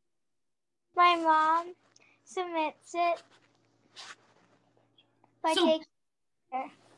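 A young girl talks with animation over an online call.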